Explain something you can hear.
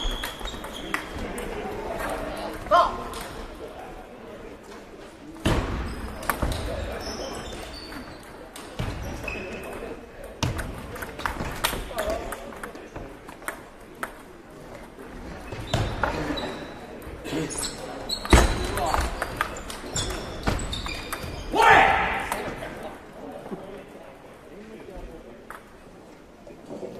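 A ping-pong ball clicks sharply against paddles and a table in a large echoing hall.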